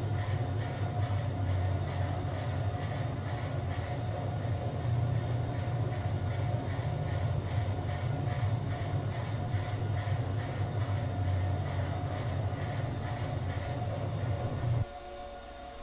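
A sawmill blade cuts through a log with a loud, steady grinding roar.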